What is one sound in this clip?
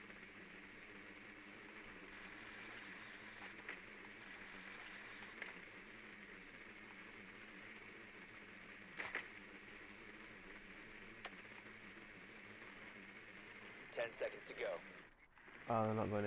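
A small remote-controlled drone whirs as it rolls across a floor.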